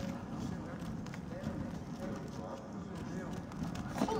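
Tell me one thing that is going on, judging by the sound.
Bare feet patter quickly on a stone floor.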